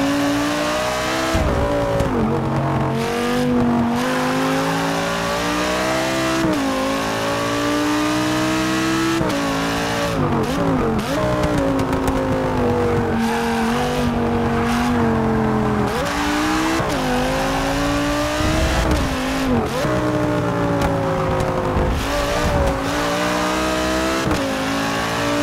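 A racing car engine roars loudly, climbing in pitch and dropping sharply with each gear change.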